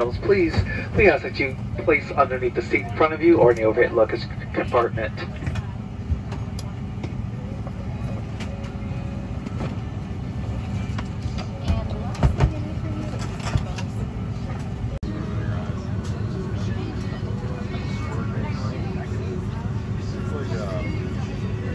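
A jet airliner's engines hum steadily while taxiing.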